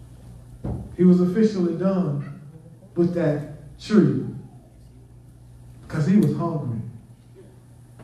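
A man speaks through a microphone in an echoing room, with pauses between phrases.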